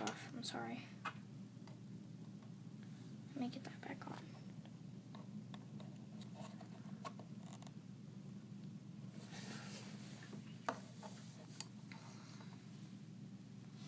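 Small plastic toy figures click and tap on a wooden tabletop.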